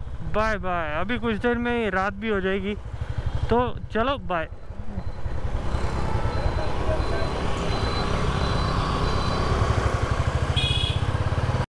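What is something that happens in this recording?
A motorcycle engine thumps steadily with a rhythmic low rumble.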